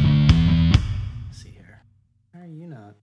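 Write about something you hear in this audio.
An electric guitar chord is strummed loudly and rings out, fading.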